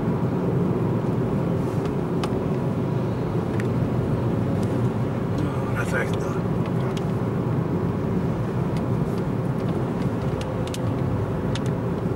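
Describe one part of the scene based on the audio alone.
Tyres roll on a wet road with a low rumble.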